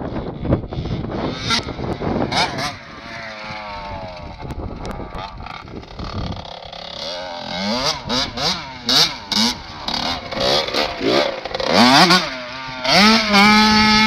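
A dirt bike engine revs and whines up and down close by.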